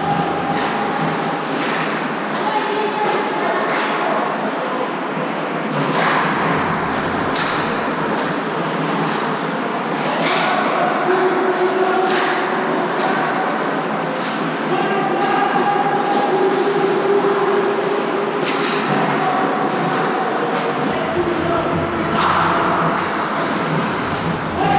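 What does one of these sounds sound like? Pucks crack against sticks and boards with a sharp echo.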